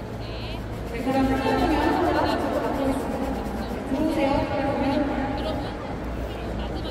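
A large crowd chants loudly in unison, echoing through the stadium.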